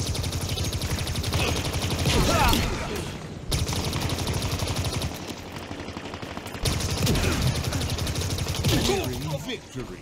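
A spiky energy gun fires rapid, buzzing bursts of shots.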